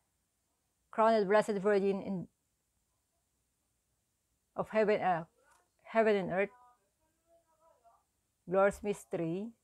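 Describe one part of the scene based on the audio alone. A woman speaks calmly and slowly, close to a microphone, with long pauses.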